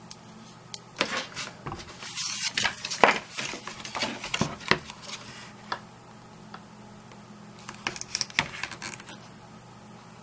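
Sheets of card slide and rustle against each other.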